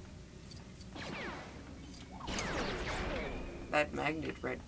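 Laser blasts and electronic effects sound from a video game.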